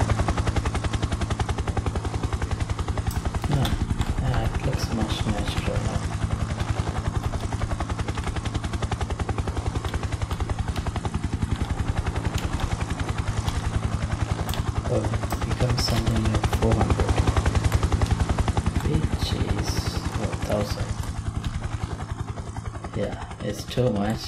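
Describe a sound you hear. An attack helicopter's rotor blades thump rapidly.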